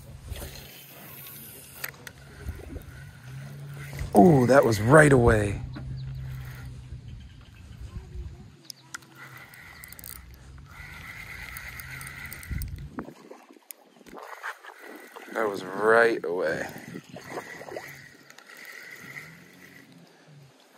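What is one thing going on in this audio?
A fishing reel whirs softly as its handle is cranked.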